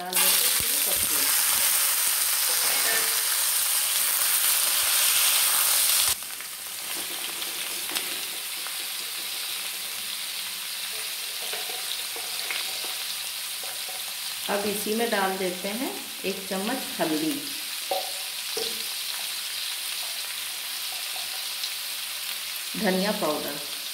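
A spatula scrapes and taps against a metal pan.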